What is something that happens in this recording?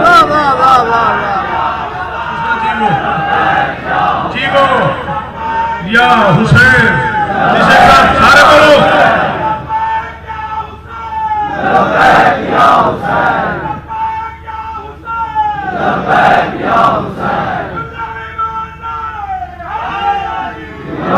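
A man speaks with passion into a microphone, his voice loud and echoing over a loudspeaker.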